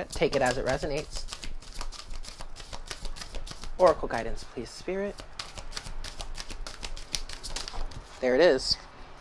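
Playing cards riffle and flap quickly as they are shuffled by hand.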